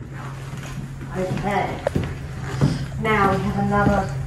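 High heels click on a wooden floor.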